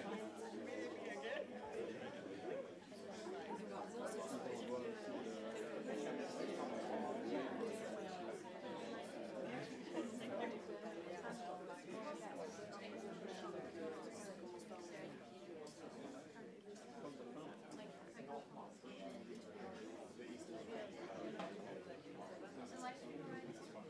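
A crowd of men and women chatter in a busy room.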